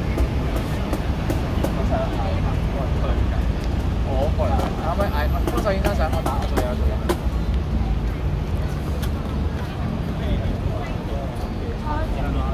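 An acoustic guitar strums steadily.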